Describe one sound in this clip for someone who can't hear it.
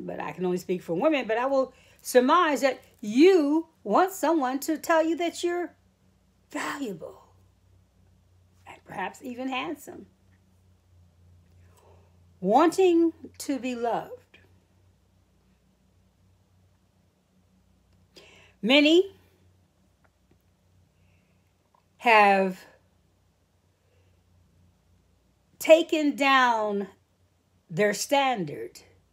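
A middle-aged woman speaks calmly and close to the microphone, with long pauses.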